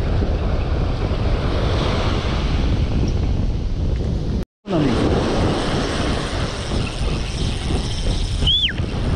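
Waves break and wash onto the shore nearby.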